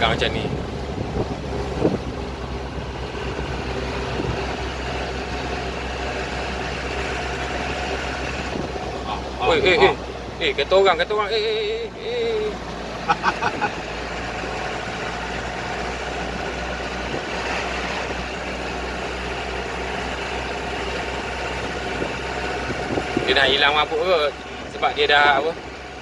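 Tyres roll on the road surface.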